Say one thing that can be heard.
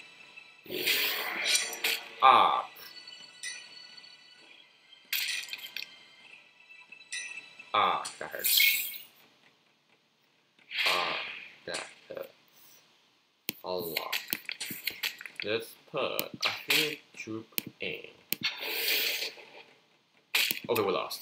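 Fantasy card game sound effects whoosh and clash in short bursts.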